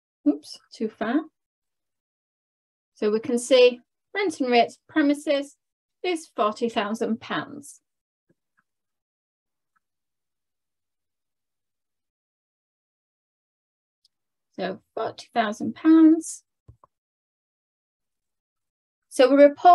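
A young woman explains calmly, heard through a microphone.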